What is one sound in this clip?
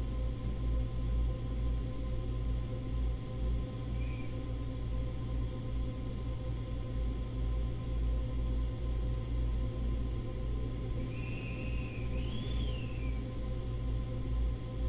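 An electric train hums steadily while standing still.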